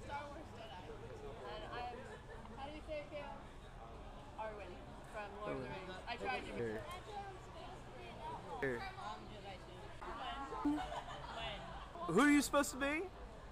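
Young people talk and laugh close by, one after another.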